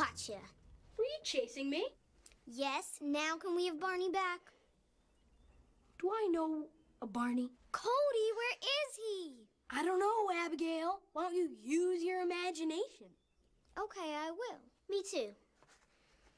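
A young girl speaks with animation nearby.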